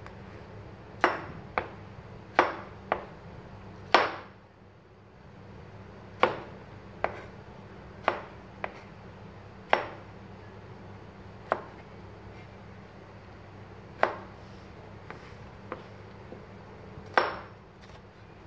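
A knife chops through tomatoes and knocks sharply on a plastic cutting board.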